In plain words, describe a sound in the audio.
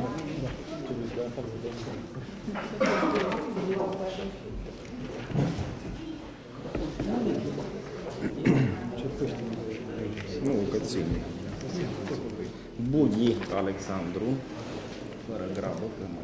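A man speaks steadily through a microphone in a large echoing room.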